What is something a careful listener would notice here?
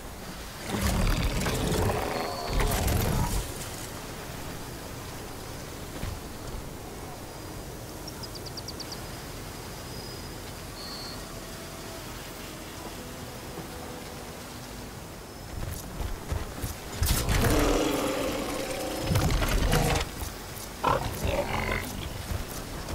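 Large machines growl and clank at a distance.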